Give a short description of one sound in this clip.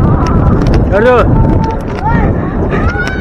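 Children shout and call out nearby outdoors.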